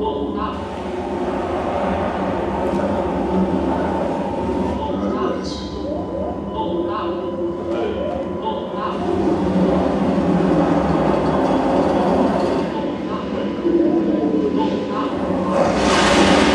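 A jet airliner's engines roar steadily, heard through loudspeakers in a room.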